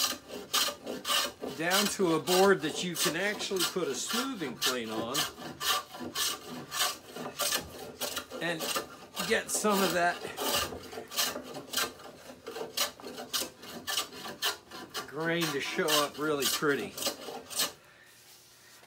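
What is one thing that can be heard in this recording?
A hand plane shaves wood in quick, rasping strokes.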